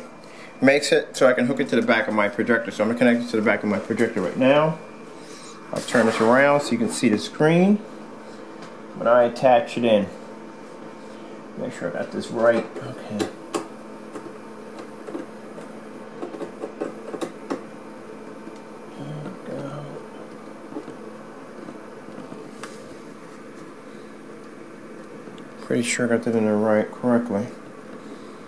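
A projector fan hums steadily close by.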